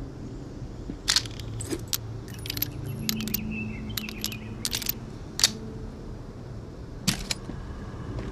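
A revolver's cylinder clicks as it is reloaded.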